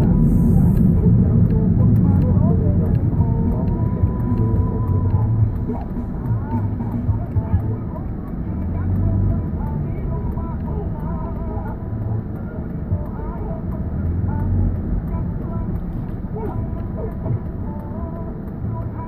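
A car engine rumbles steadily, heard from inside the car.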